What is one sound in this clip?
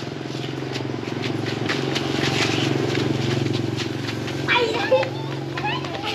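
Children shout and play nearby.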